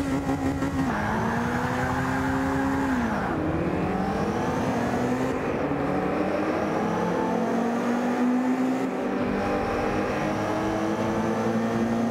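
A racing car engine accelerates hard, rising in pitch through the gears.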